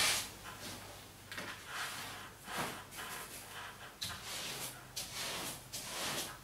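A wallpaper brush swishes over paper on a wall.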